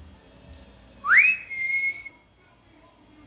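A dog gives a high, rising whine close by.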